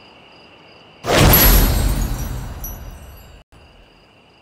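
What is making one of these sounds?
A loud whoosh swells up and slowly fades.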